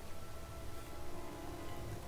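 Flames crackle nearby.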